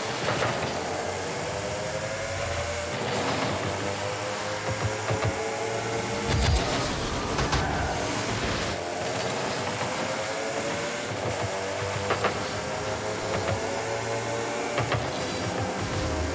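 A car engine whines, its pitch climbing again and again as it speeds up.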